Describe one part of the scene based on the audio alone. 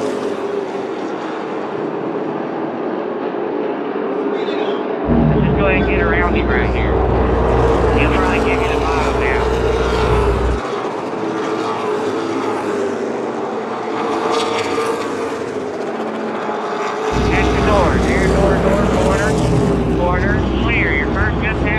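Race car engines roar loudly as cars speed around a track.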